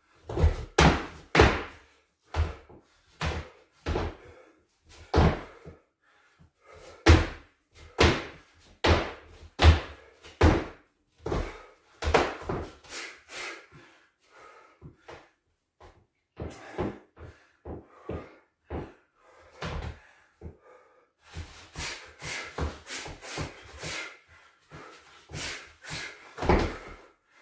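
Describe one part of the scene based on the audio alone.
Feet shuffle and thud on a hard floor.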